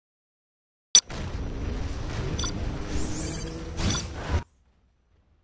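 Dramatic game music plays loudly, then cuts off.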